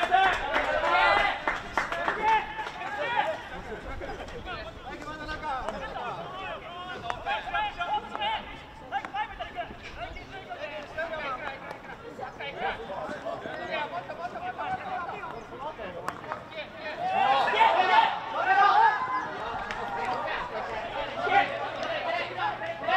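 Hockey sticks click sharply against a ball.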